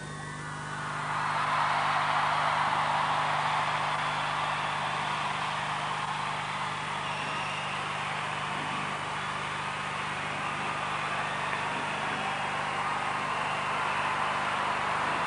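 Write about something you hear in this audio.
A crowd of young women sings and cheers loudly nearby.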